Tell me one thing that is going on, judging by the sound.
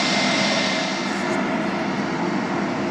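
A regional jet with rear-mounted engines hums as it taxis.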